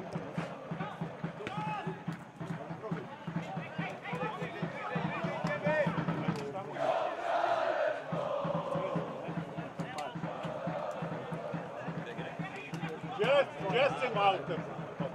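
A crowd of adult spectators chatters and calls out close by, outdoors.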